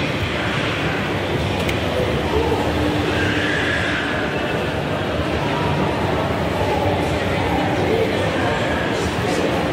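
An escalator hums and rattles steadily.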